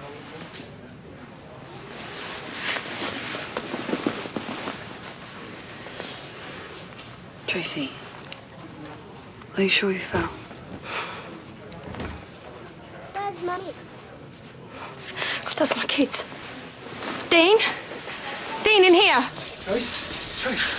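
A woman speaks firmly, close by.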